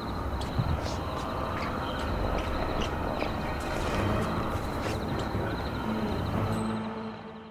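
A body is dragged across gravelly ground.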